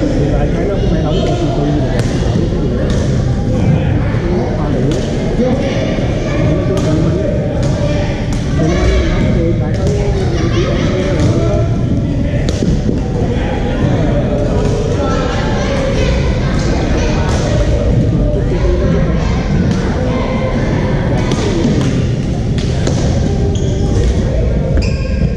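Many players chatter and call out, echoing in a large hall.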